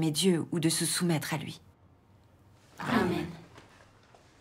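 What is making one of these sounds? A young woman reads aloud calmly.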